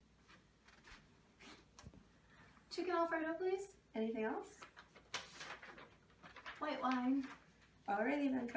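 Paper rustles in hands.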